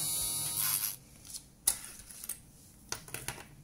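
Small plastic pieces click and tap on a wooden table.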